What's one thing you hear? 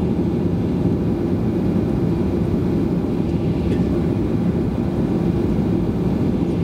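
A jet airliner's engines hum and rumble steadily as the plane taxis, heard from inside the cabin.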